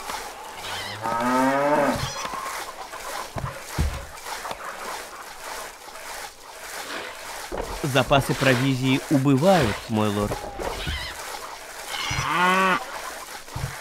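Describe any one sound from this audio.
Cattle low several times.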